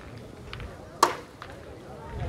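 A metal ball clacks against another ball.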